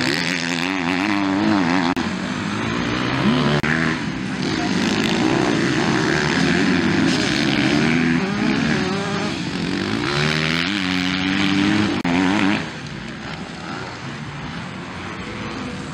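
Motocross dirt bikes race by on a dirt track, engines revving hard through the gears.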